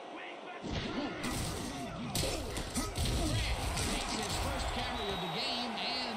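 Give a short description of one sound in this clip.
Football players collide with thuds of pads.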